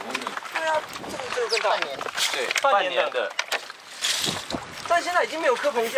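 A young man speaks up close, casual and lively.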